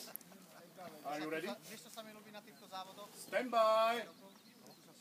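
A man calls out commands outdoors.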